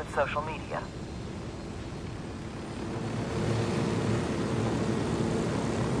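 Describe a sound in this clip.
A helicopter's rotor whirs and roars steadily as it lifts off.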